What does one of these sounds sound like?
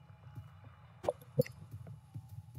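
A lighter clicks and flares.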